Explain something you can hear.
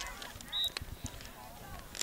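A hockey stick strikes a ball on grass.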